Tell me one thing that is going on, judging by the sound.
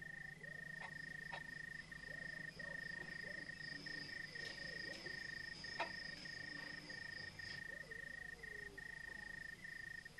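Footsteps climb wooden stairs indoors.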